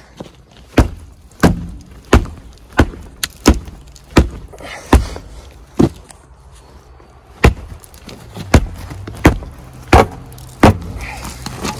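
A boot repeatedly kicks a wooden post with sharp, heavy thuds.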